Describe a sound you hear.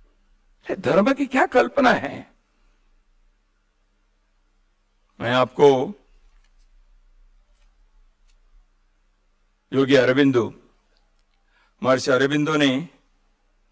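An elderly man speaks into a microphone in short, emphatic bursts with pauses between them.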